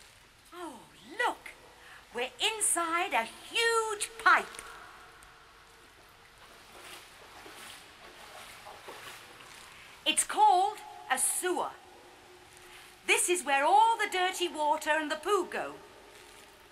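A woman speaks with excitement, her voice echoing in a large tunnel.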